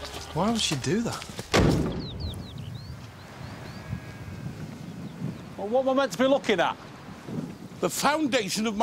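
A man speaks calmly outdoors.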